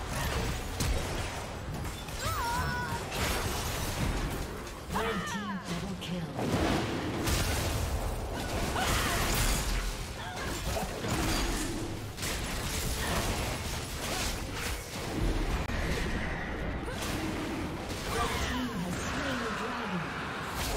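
Sound effects from a fantasy battle game clash, burst and whoosh as characters fight.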